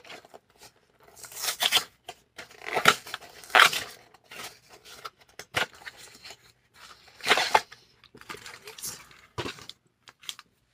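Cardboard packaging crinkles and tears as hands open a box.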